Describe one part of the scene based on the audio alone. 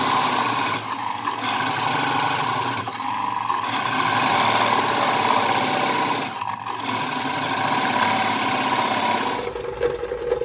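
A chisel cuts into spinning wood with a loud rough scraping.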